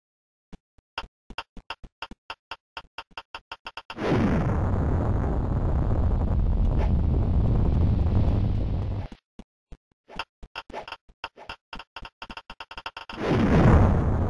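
A bomb ticks faster and faster.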